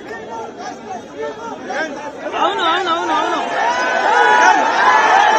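Several men shout and talk over each other in a crowd nearby, growing louder.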